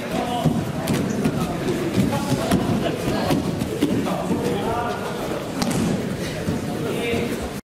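Bodies thud and slap onto a padded mat.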